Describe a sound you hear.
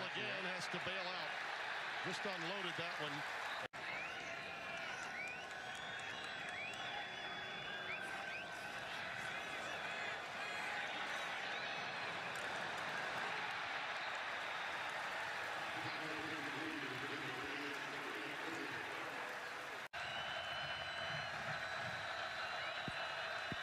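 A large stadium crowd roars and cheers steadily outdoors.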